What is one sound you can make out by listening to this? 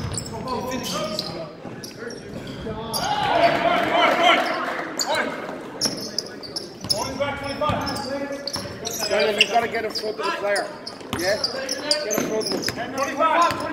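Young men shout and call out to each other in an echoing gym.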